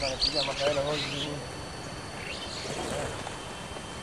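Bird wings flutter as a flock takes off.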